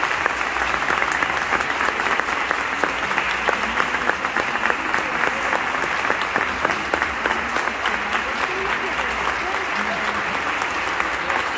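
Marimbas play a quick, lively tune with many rapid mallet strikes.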